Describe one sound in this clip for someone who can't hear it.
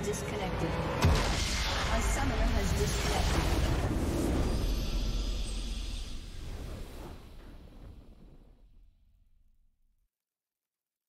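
A triumphant fanfare swells and fades out.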